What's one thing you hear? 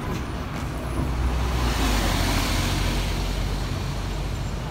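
A bus passes close by with a loud whoosh.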